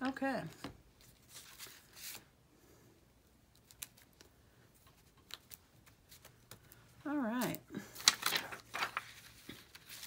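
Rubber stamps are peeled off a plastic backing.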